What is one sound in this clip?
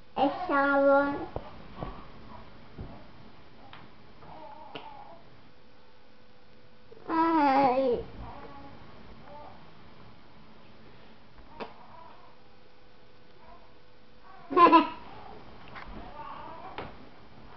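A young boy speaks into a phone close by, in short loud bursts and quieter murmurs.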